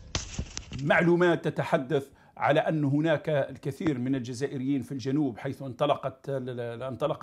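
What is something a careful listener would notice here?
A middle-aged man talks with animation into a microphone.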